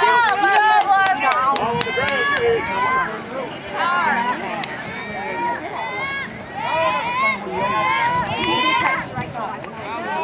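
A crowd of spectators cheers and shouts encouragement outdoors.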